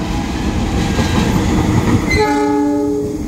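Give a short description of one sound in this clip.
A diesel locomotive rumbles loudly past close by.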